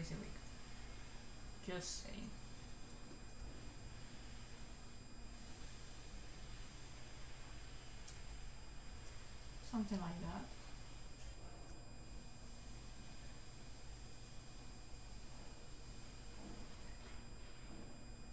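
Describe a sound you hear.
A young woman speaks briefly and calmly into a close microphone.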